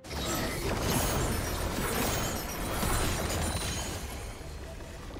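Fantasy game spell effects whoosh and crackle.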